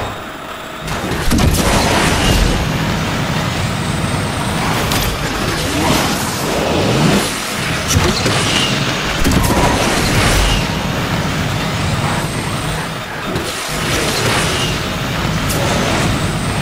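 Car crashes and impacts bang loudly.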